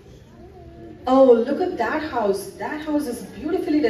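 Women sing loudly through loudspeakers in a large echoing hall.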